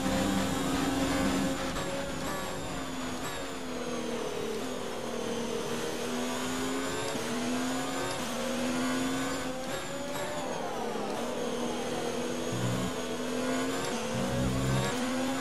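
A racing car engine screams at high revs, its pitch climbing and dropping sharply with each gear change.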